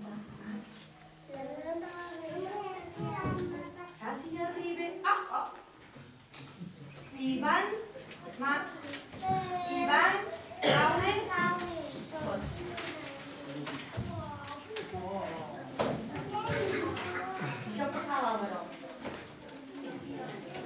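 Young children speak and call out their lines on a stage in a large echoing hall.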